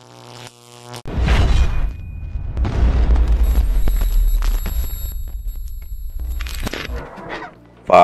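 Electric sparks crackle and buzz loudly.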